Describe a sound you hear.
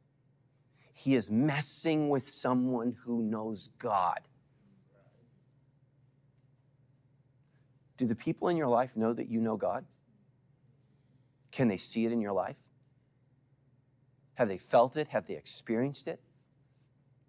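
A middle-aged man speaks with animation into a microphone, pausing between phrases.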